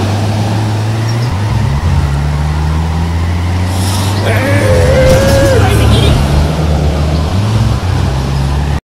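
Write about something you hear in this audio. A car engine roars steadily and revs up and down.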